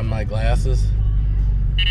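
A middle-aged man talks close by, calmly.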